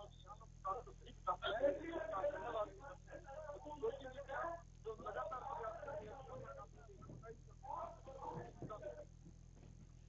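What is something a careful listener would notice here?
A middle-aged man speaks loudly outdoors.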